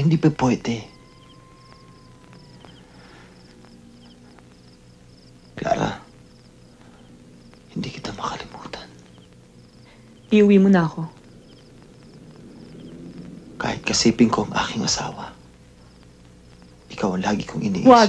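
A man speaks quietly and close by in short phrases.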